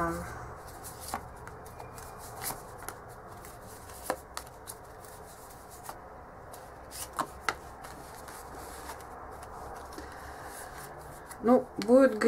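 Playing cards slap softly onto a cloth surface.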